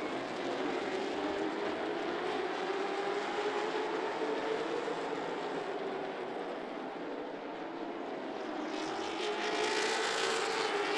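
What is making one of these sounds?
Stock car engines roar loudly as the cars race around the track.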